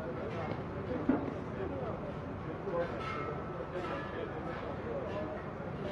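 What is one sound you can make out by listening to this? A digger's engine rumbles.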